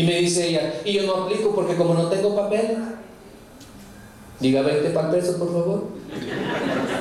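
A man speaks with animation through a microphone in a large, echoing hall.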